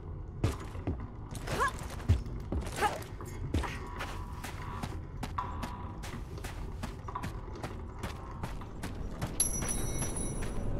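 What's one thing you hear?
Footsteps run quickly on a hard floor.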